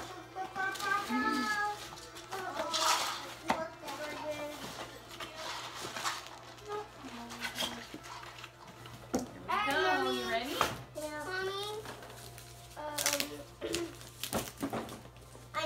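Wrapping paper and boxes rustle and crinkle.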